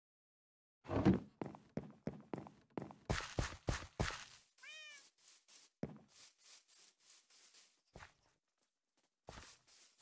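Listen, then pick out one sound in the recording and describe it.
Footsteps pad across grass outdoors.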